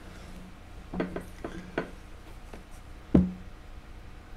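A hand taps and knocks lightly on a hard plastic object.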